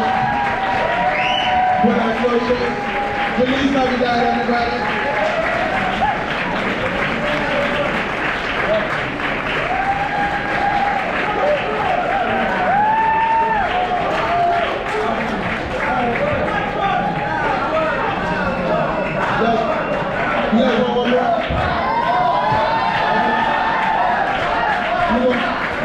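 A drummer plays a busy rhythm on a drum kit close by.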